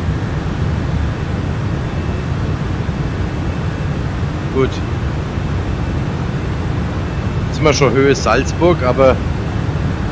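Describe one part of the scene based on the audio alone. A jet airliner's engines drone steadily in flight.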